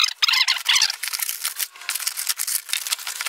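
Packing tape rips loudly off a cardboard box.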